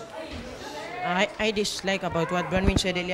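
A teenage boy speaks slowly into a microphone.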